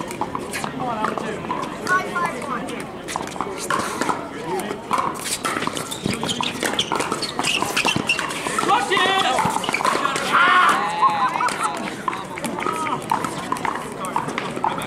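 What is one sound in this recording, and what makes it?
Several men and women talk and call out nearby outdoors.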